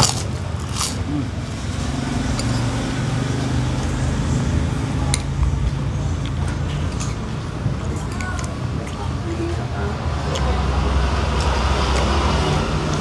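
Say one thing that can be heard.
A man chews food close by.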